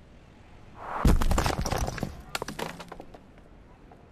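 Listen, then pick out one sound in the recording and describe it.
A heavy object crashes into the ground with a loud thud and rattling debris.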